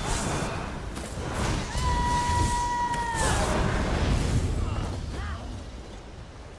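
Magic spells crackle and zap in quick bursts.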